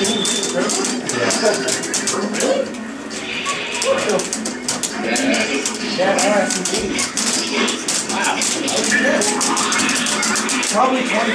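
Video game music plays steadily through a small speaker.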